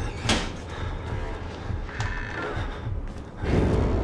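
A metal locker door swings open with a clank.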